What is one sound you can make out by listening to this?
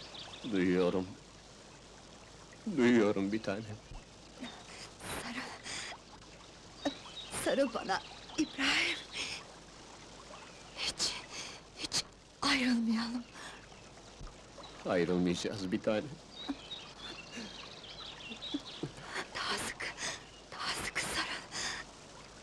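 A young woman laughs and sighs softly close by.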